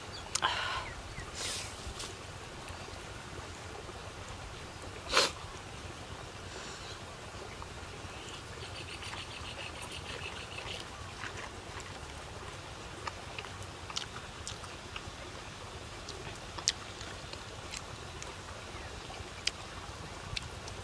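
Food crunches and rustles under a man's fingers.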